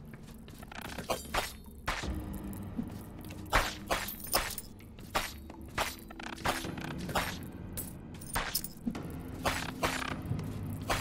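Sword swings whoosh and strike in quick bursts.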